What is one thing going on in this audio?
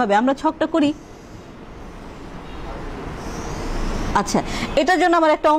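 A young woman speaks calmly and clearly, as if explaining.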